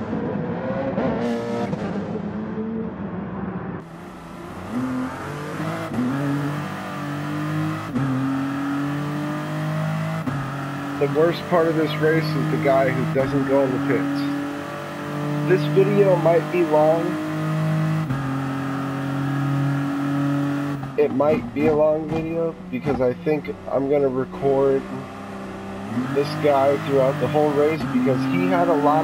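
A racing prototype's engine accelerates hard through the gears.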